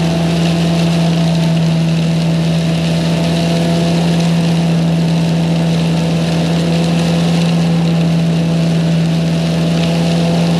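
Air from a leaf blower rushes and hisses, blasting across loose ground.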